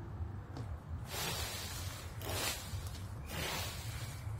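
A rake scratches through dry leaves on the ground.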